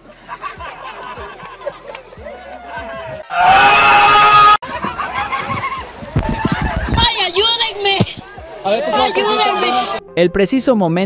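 Men shout and laugh nearby outdoors.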